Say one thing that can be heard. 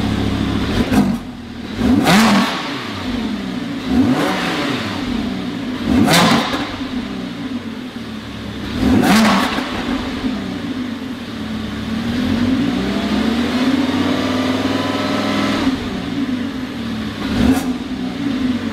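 Exhaust pops and crackles after the engine revs.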